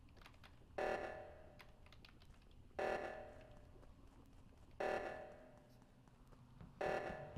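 An alarm blares in short, repeated bursts about every two seconds.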